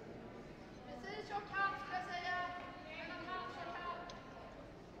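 Several women talk with each other nearby, in a large echoing hall.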